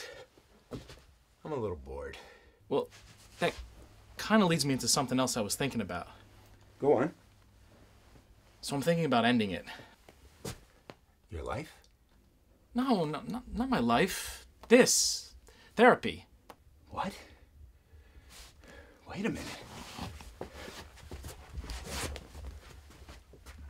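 An older man speaks in a strained voice, close by.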